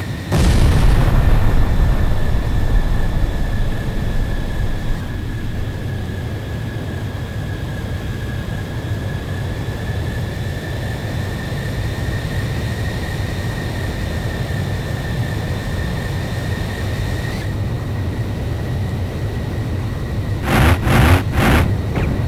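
A jet engine roars steadily with a high whine.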